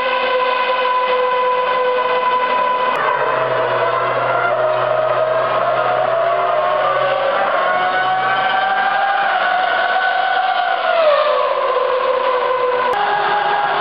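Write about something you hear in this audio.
A racing car engine idles and revs loudly nearby.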